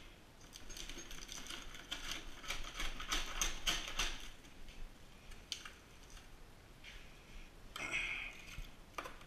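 A metal tool scrapes and clicks against a window frame.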